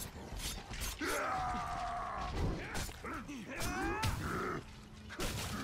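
A large beast growls and roars loudly.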